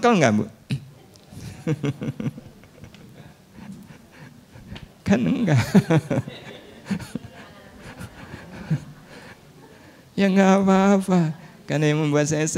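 A middle-aged man speaks cheerfully into a microphone.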